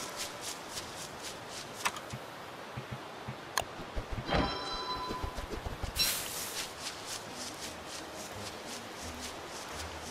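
Light footsteps patter steadily over dry ground.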